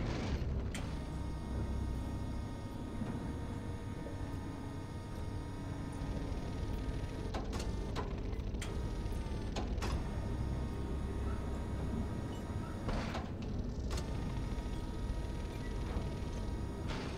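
Heavy machinery hums and rumbles steadily.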